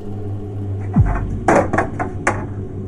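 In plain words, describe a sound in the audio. A television hisses with loud static.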